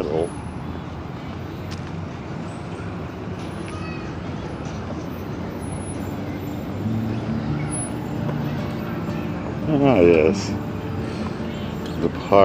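Distant people murmur faintly outdoors.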